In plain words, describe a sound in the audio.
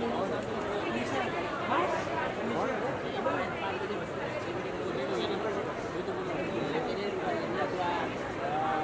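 A crowd of women chatter and call out loudly nearby.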